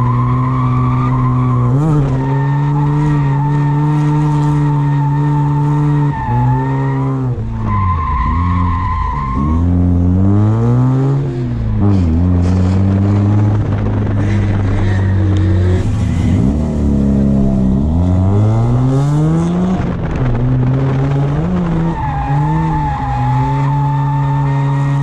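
Tyres squeal on pavement.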